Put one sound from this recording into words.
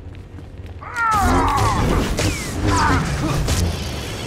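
Lightsabers clash and crackle in a fight.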